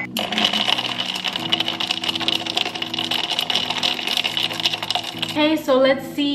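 A spoon clinks and whirs as it stirs a drink in a glass jar.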